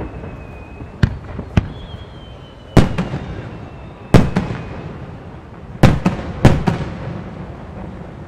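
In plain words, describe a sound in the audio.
Fireworks burst with loud booming bangs that echo away.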